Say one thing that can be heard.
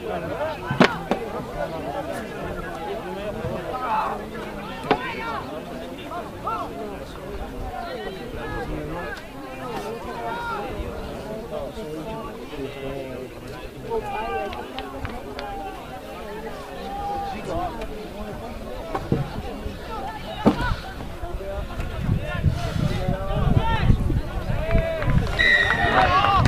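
Several young men shout and call out to one another across an open field.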